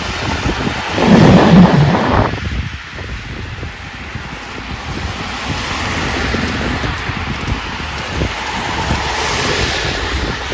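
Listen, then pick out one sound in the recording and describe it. A car hisses past on a wet road.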